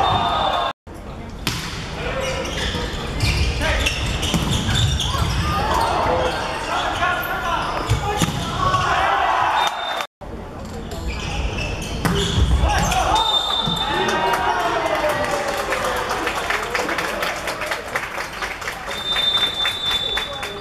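A crowd of young spectators shouts and cheers in a large echoing hall.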